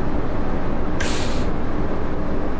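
A bus's air brakes release with a short hiss.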